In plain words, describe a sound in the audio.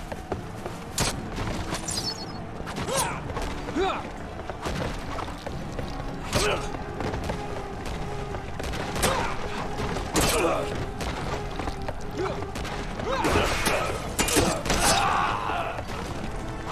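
Sword blows clash in a fight.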